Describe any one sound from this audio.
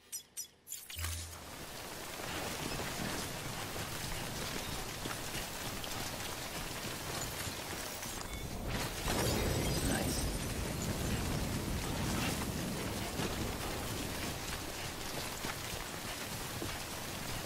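Footsteps crunch over rough grass.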